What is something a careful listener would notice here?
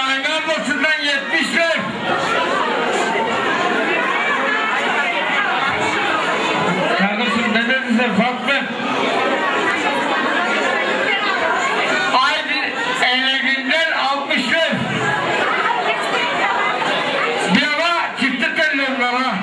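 A man sings loudly through a microphone and loudspeakers.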